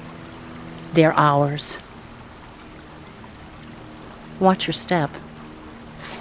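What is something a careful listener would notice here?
A woman speaks calmly and firmly nearby.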